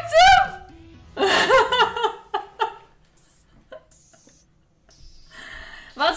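A young woman squeals and laughs excitedly, close to a microphone.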